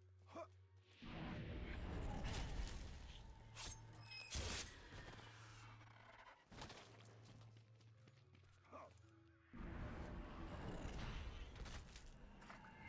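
Magic bursts whoosh loudly.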